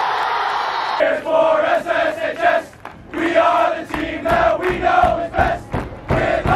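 A group of young men sing together loudly outdoors.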